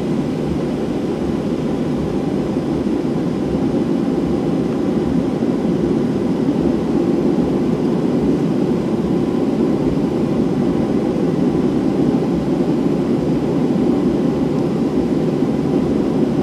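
Jet engines roar steadily inside an airplane cabin.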